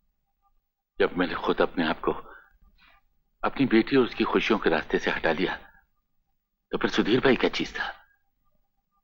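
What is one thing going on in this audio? An elderly man speaks emotionally, close by.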